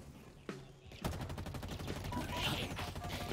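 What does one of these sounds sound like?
Rapid gunshots fire.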